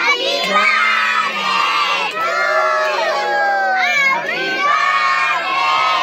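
Children sing loudly together close by.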